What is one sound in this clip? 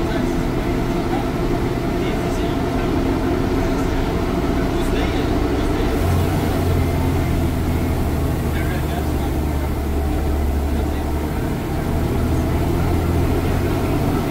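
A bus rattles and creaks as it rolls over a bumpy road.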